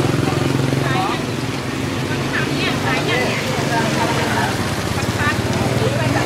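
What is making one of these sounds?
A motorbike engine idles nearby with a steady low rumble.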